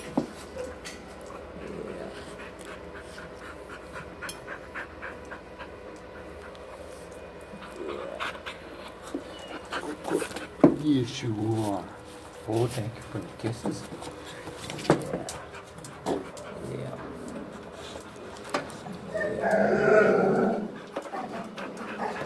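A dog howls and whines up close.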